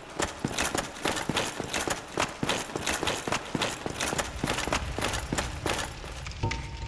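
Armored footsteps clank rapidly on stone.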